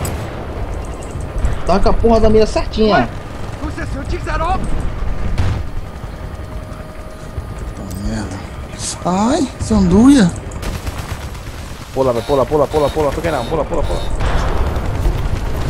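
A helicopter's rotor thumps and its engine roars steadily.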